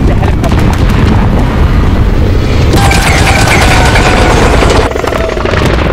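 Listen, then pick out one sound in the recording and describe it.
A loud explosion booms and rumbles.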